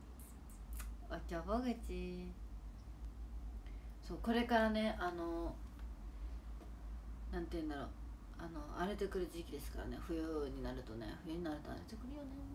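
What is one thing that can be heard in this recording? A young woman speaks close to a microphone, calmly and expressively.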